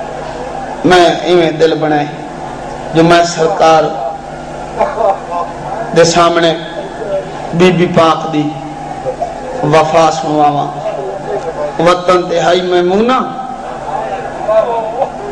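A man speaks forcefully in bursts through a microphone and loudspeakers.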